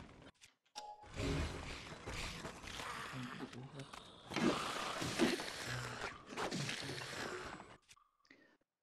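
Game fight effects crash and whoosh loudly.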